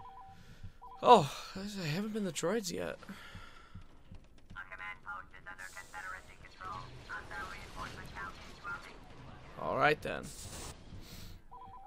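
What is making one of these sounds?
A man talks into a headset microphone, close up.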